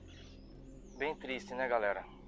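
A man speaks close to the microphone.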